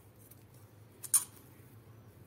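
Metal scissors are set down on a padded surface with a click.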